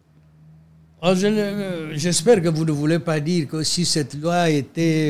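An elderly man speaks with animation, close to a microphone.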